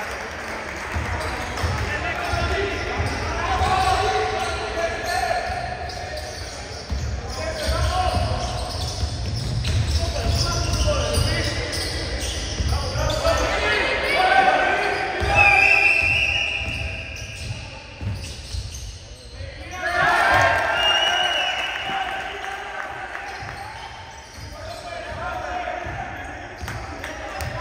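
Spectators shout and cheer in a large echoing hall.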